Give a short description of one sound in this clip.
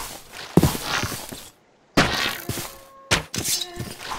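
A bow twangs as an arrow is shot.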